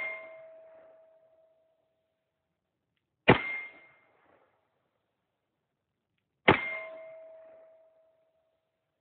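A handgun fires single loud shots that ring out and echo through the woods.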